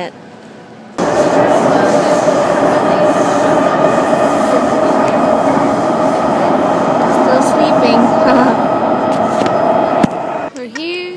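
A subway train rumbles loudly while moving.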